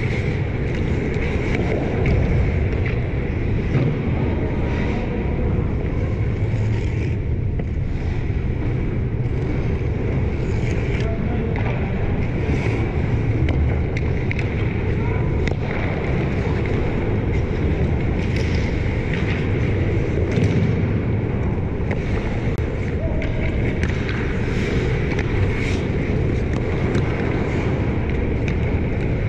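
Hockey pucks knock sharply off sticks in a large echoing arena.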